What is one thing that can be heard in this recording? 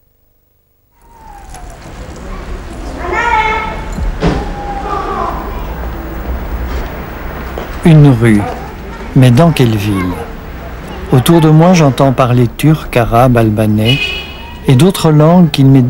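A busy street hums with distant traffic outdoors.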